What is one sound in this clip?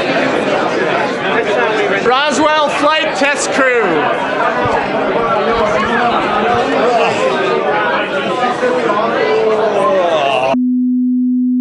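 A crowd of people chatters loudly indoors.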